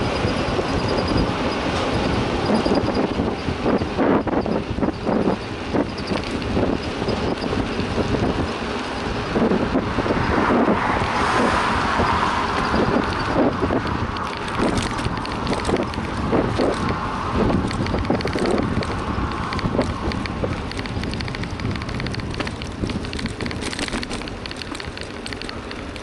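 Wind rumbles steadily against a moving bicycle's microphone.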